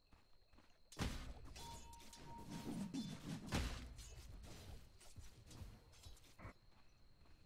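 Swords clash and magic bursts crackle in a fast fight.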